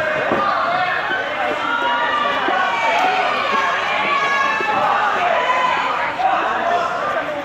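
Men call out and talk near the mat.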